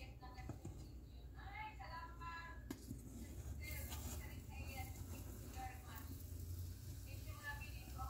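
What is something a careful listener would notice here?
Metal tongs clink and scrape against a cooking pot.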